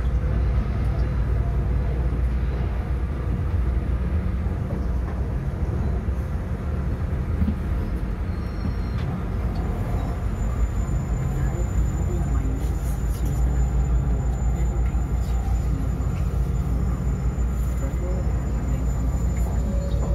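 Another train passes close by on the next track.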